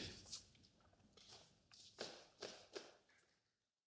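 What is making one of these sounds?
Paper rustles as pages are handled.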